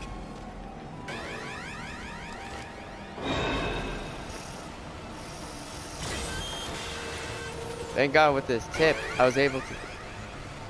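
Arcade machines beep and play electronic tunes.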